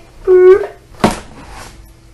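A cardboard box knocks against a table.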